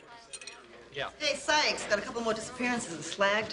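A woman speaks loudly, reading out.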